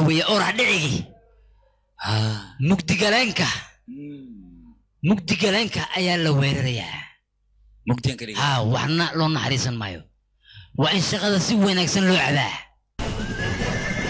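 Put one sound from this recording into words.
A man speaks forcefully, with long pauses.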